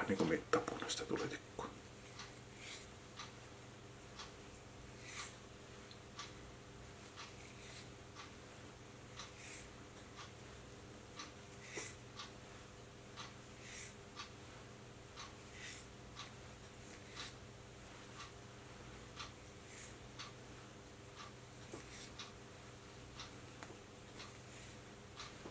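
Thread rustles and ticks softly as it is wound by hand.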